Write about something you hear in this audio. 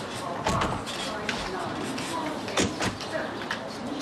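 A car boot lid slams shut.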